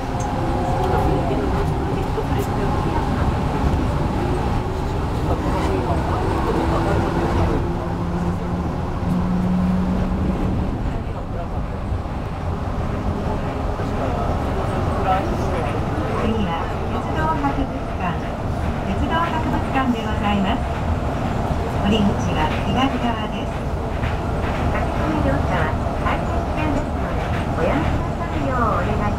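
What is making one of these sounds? A train's motor whines as the train runs.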